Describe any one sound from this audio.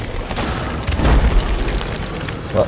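An explosion booms with a deep, muffled rumble.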